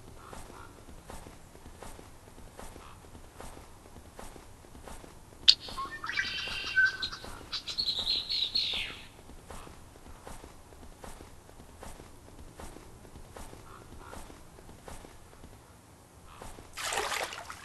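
A heavy animal flops steadily across crunching snow.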